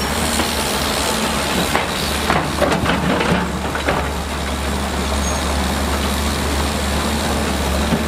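A bulldozer engine rumbles as it pushes earth.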